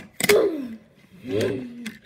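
A small toy car is set down on a wooden floor with a light tap.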